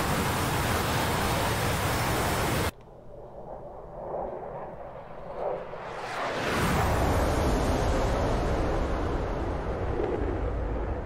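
A jet engine roars steadily, dropping away briefly before swelling louder again.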